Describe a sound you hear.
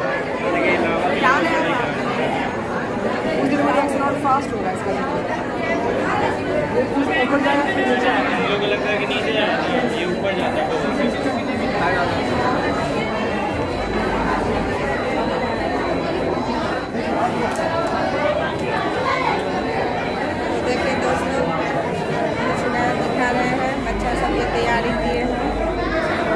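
Many voices chatter in a busy echoing room.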